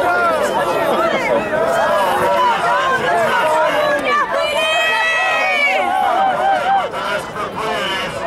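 A crowd of young women chatter and call out to each other outdoors.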